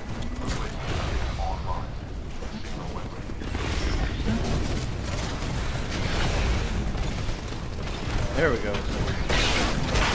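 A heavy mechanical machine rumbles and clanks.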